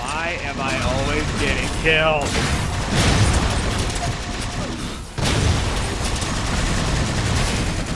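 Energy weapons zap and crackle.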